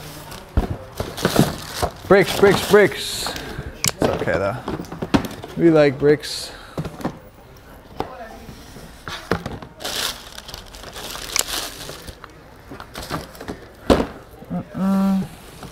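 Cardboard shoe boxes rustle and thump as they are handled.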